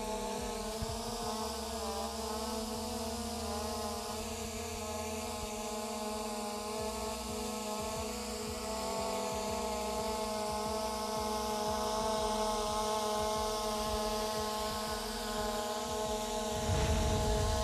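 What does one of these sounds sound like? A drone hums with a steady high-pitched whine close by.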